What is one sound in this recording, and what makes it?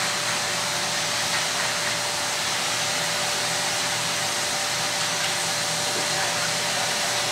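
A spray gun hisses steadily close by.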